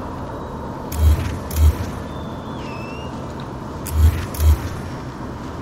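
Heavy thuds sound as parts snap into place.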